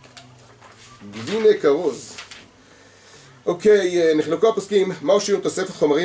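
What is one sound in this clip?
A middle-aged man reads aloud close to a microphone, in a steady chanting voice.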